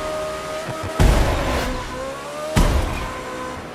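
A car bumps hard against the roadside.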